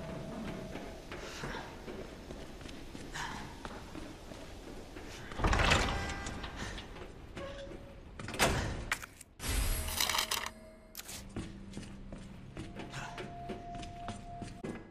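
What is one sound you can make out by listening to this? Footsteps fall on a hard floor.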